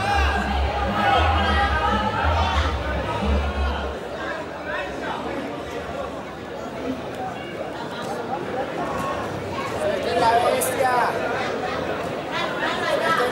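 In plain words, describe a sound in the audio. A large crowd of spectators chatters and cheers outdoors.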